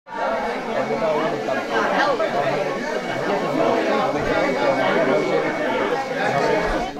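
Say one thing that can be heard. A crowd of men and women chatter indoors.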